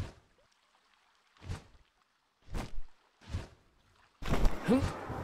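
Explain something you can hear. Large wings flap with deep whooshing beats.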